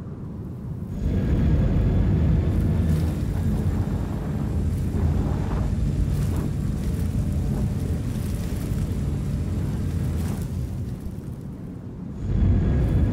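Big tyres crunch over rough dirt.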